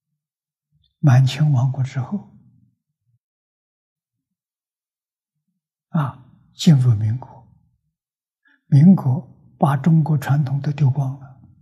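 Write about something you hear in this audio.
An elderly man lectures calmly, close to a microphone, in short phrases with pauses.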